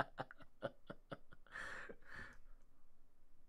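A man laughs softly close to a microphone.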